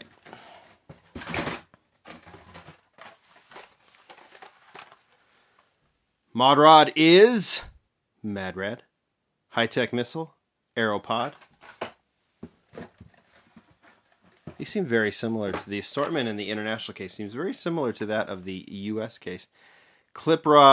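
Plastic blister packs rustle and tap as they are pulled from a cardboard box.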